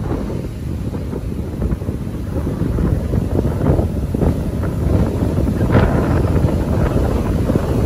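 Waves crash and churn on the shore.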